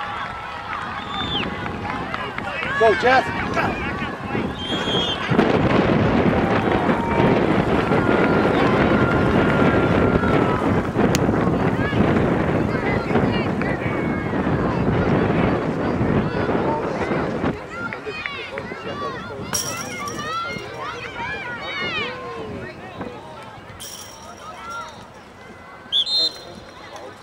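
Girls shout and call out across an open field.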